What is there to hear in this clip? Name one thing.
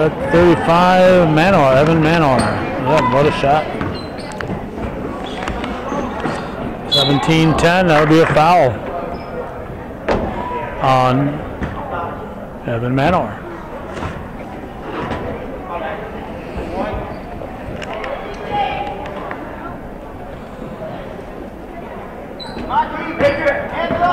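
Spectators shout and cheer loudly in an echoing gym.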